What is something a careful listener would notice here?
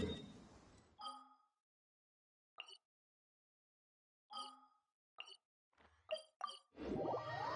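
Soft game menu chimes blip several times.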